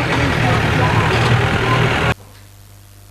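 A crowd at a street procession makes a loud, busy noise.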